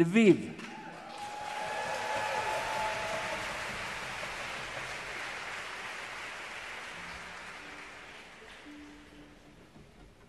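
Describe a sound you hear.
An audience applauds and cheers loudly, then the applause fades.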